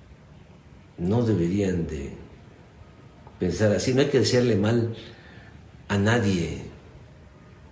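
An elderly man speaks calmly and clearly into a close microphone, in short phrases with pauses.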